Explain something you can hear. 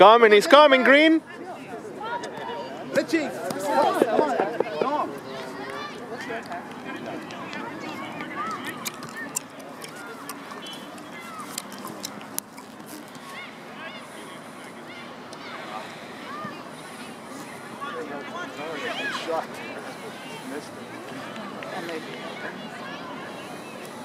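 Boys shout to each other across an open playing field.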